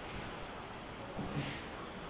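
A brush sweeps dust across a glass pane.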